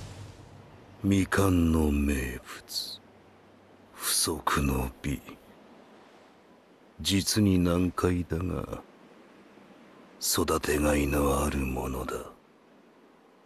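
A man speaks slowly in a low, menacing voice, close up.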